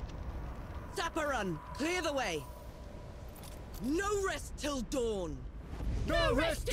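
A woman shouts orders loudly.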